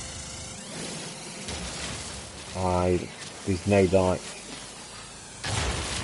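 A mining laser hums steadily as it fires.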